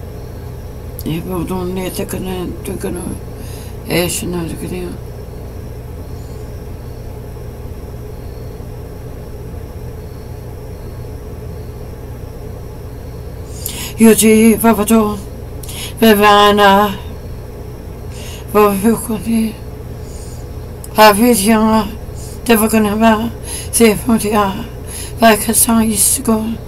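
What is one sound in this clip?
A young woman speaks calmly and close to a microphone, in short bursts with pauses.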